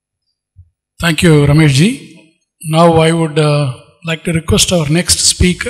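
A man speaks loudly through a loudspeaker in a large hall.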